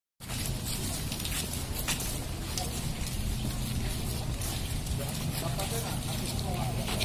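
A crowd of people murmurs and chatters outdoors.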